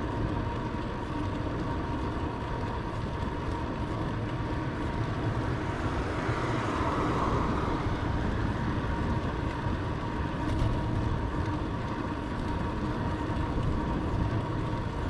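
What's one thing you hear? Wind rushes loudly past a bicycle rider moving along a road.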